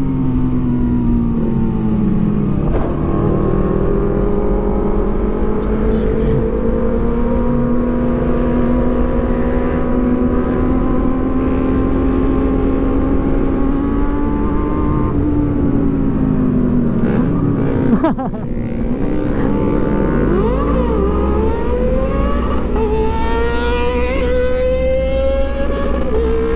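A motorcycle engine hums steadily close by, rising and falling in pitch as it speeds up and slows.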